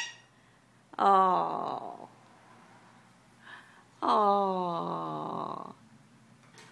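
A parrot makes drawn-out, voice-like calls close by.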